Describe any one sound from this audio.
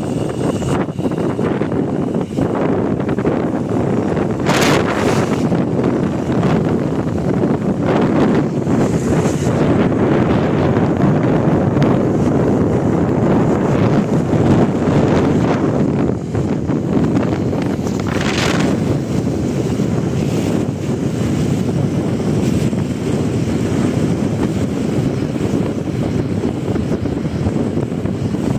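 A vehicle's engine and tyres rumble steadily.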